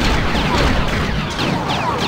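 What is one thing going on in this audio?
Small blocks clatter and scatter as something breaks apart.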